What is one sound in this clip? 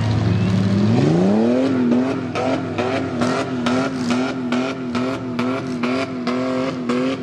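A second engine revs up sharply and roars close by.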